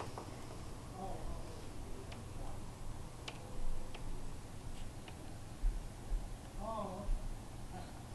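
A bird calls outside a window.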